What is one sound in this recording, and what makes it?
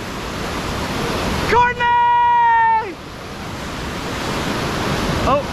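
Whitewater rushes and churns loudly, heard outdoors.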